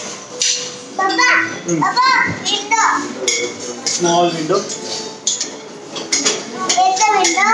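A young girl speaks in a high, lively voice.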